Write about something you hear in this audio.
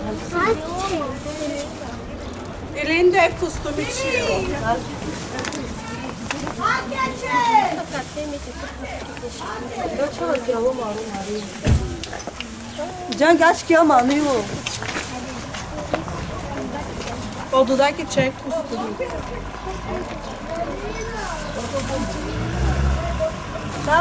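Plastic bags rustle as they are handed out.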